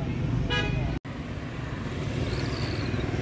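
Motorbike engines rumble nearby on a street.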